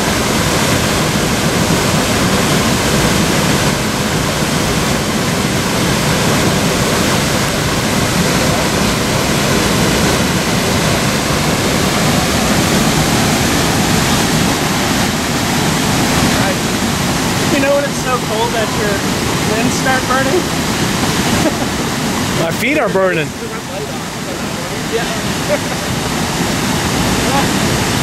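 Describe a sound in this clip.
A waterfall roars steadily nearby.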